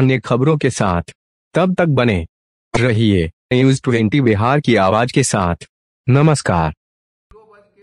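A man speaks firmly and clearly close to a microphone.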